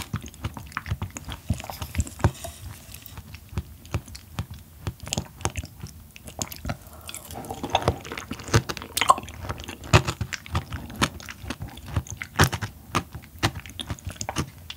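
A young woman chews soft, squishy food close to a microphone with wet smacking sounds.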